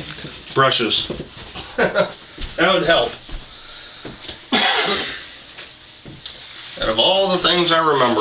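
A man talks loudly and animatedly close by.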